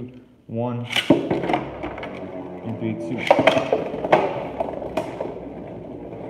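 Spinning tops clash and clatter against each other in a plastic arena.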